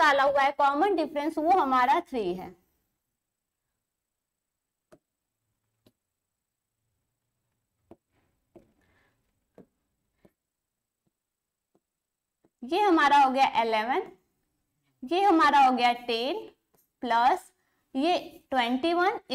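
A woman speaks steadily and clearly into a close microphone, pausing at times.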